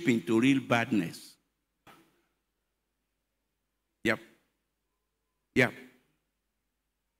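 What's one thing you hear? An adult man speaks through a microphone in short bursts with long pauses.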